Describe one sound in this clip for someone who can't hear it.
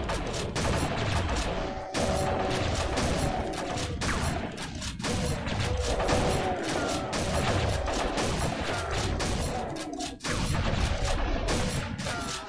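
Monsters growl and squeal as they are shot.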